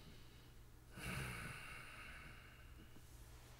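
A man speaks briefly and quietly close to a microphone.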